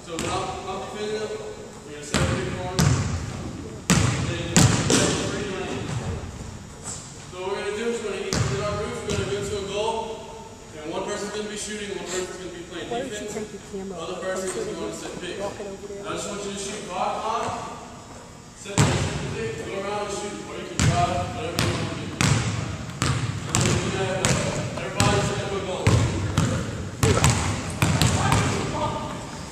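Young men talk and call out across the gym.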